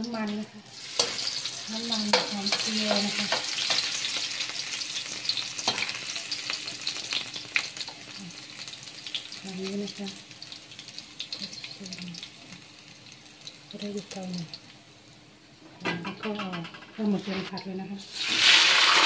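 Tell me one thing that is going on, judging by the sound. Garlic sizzles as it fries in hot oil in a wok.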